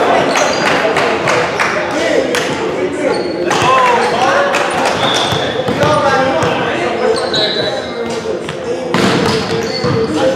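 Balls thud and bounce on a hard floor in a large echoing hall.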